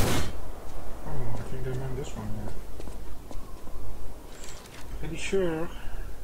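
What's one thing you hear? A young man speaks casually into a microphone.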